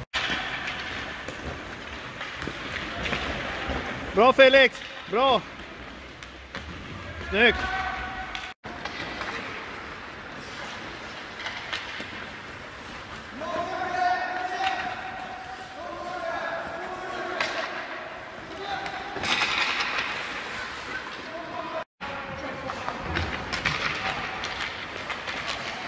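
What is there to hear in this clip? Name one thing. Skates scrape and hiss across the ice in a large echoing hall.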